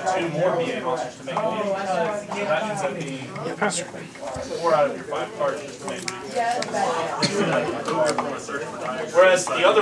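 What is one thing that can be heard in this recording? Playing cards are shuffled by hand.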